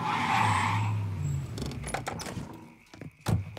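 A car engine runs and then cuts off.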